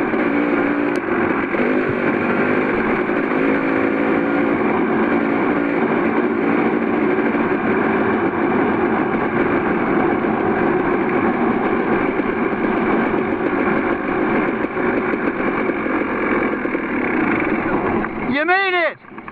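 A motorcycle engine drones while riding over gravel.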